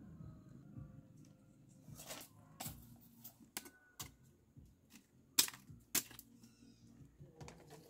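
Bamboo strips clack and rattle against each other.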